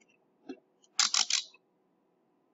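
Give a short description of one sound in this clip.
A dial clicks as it is turned.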